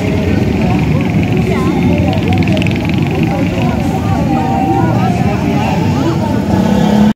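Several women chatter and talk nearby outdoors.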